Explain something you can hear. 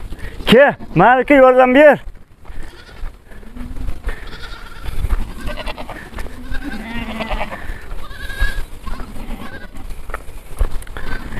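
Goats bleat loudly close by and further off.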